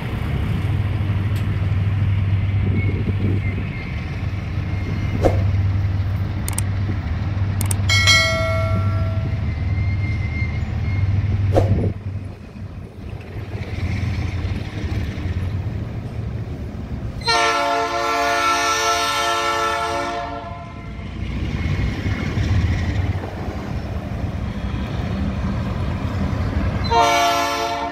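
Traffic rumbles steadily on a nearby road.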